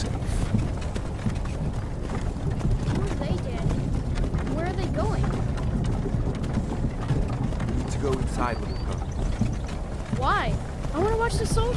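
A wooden cart rumbles and creaks as it rolls along.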